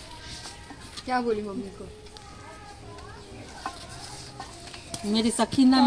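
A young girl talks brightly close by.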